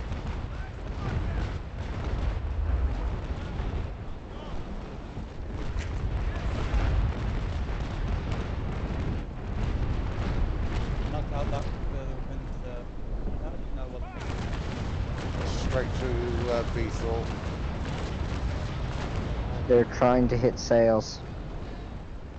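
Cannons boom in a heavy volley.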